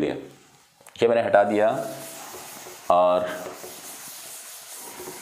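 A cloth eraser rubs across a chalkboard.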